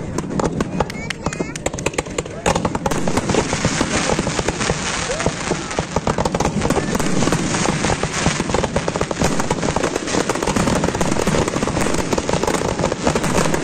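Fireworks burst and bang rapidly in a dense barrage.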